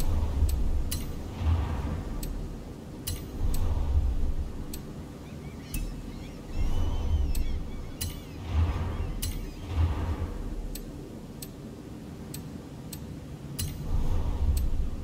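Short interface clicks tick at irregular intervals.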